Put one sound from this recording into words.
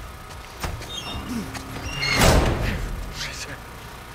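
A metal door bangs open.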